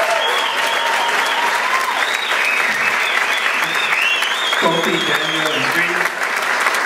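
Audience members whistle and cheer loudly.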